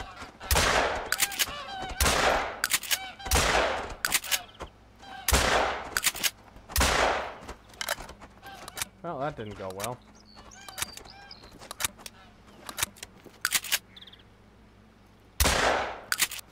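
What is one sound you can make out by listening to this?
A shotgun fires loud, booming shots.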